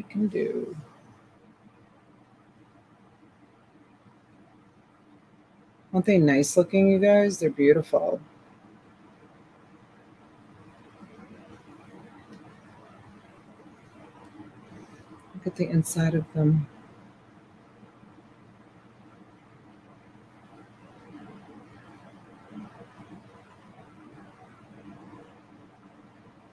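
A hand softly clicks and handles plastic sunglasses.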